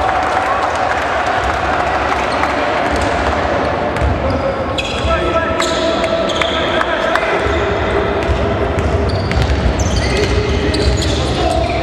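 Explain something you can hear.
A crowd murmurs in the echoing hall.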